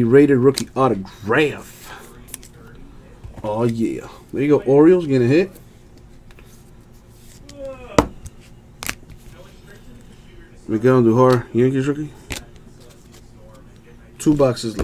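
Trading cards tap and slide against each other in hands.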